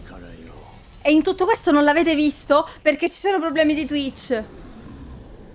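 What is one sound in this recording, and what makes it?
A young woman exclaims loudly and excitedly close to a microphone.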